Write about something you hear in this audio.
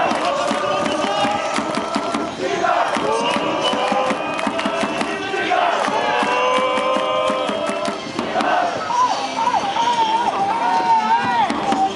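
Fans clap their hands in rhythm.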